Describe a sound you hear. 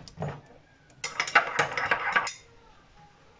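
A spoon clinks against a small cup.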